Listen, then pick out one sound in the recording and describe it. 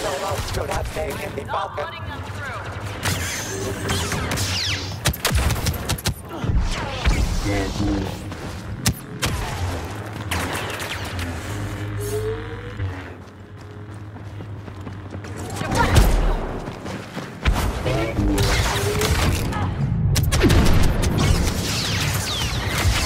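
A lightsaber hums and swooshes as it swings.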